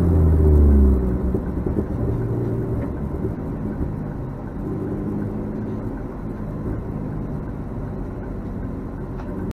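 A car engine idles and rumbles low inside the cabin.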